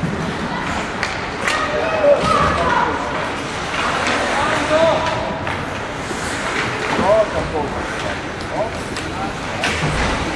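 Hockey sticks clack against the puck.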